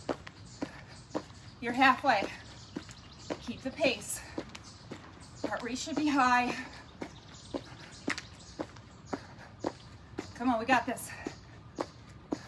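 Feet land softly and rhythmically while jumping.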